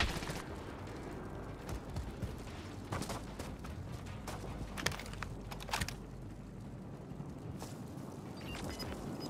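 Footsteps crunch through dry grass and gravel.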